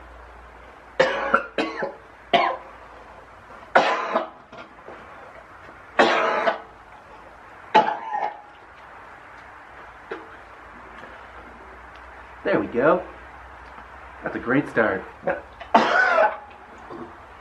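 A man coughs hard, in fits.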